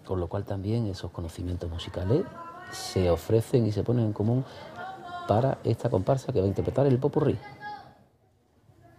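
A choir of children sings together on a stage, heard in a large hall.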